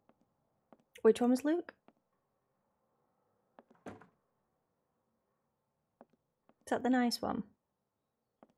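A young woman speaks briefly and quietly into a close microphone.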